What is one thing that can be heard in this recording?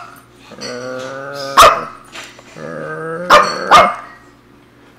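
A small dog barks playfully.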